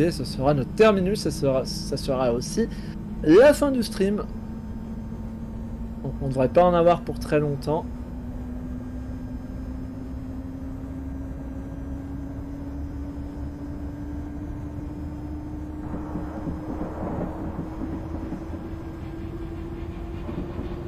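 An electric train motor hums steadily, slowly rising in pitch as the train speeds up.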